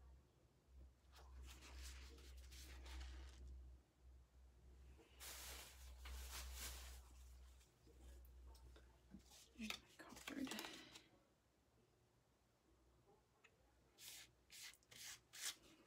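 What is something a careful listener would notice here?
A card scrapes softly across wet paint.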